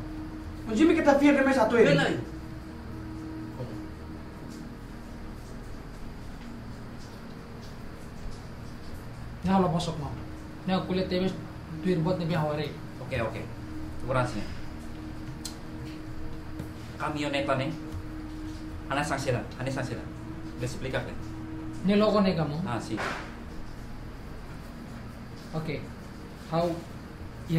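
A young man speaks earnestly nearby.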